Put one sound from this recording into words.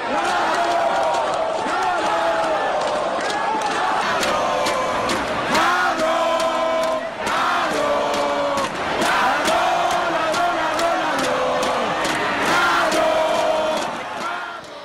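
Spectators clap and bang on things in the stands.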